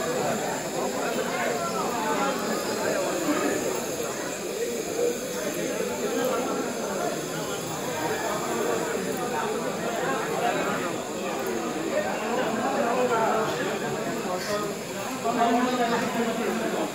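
A crowd of men and women chatters around the listener.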